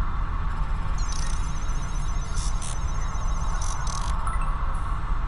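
Electronic beeps chirp in quick bursts.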